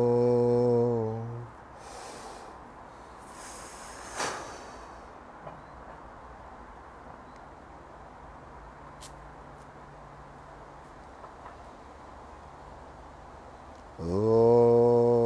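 A man chants a long, steady held note close by.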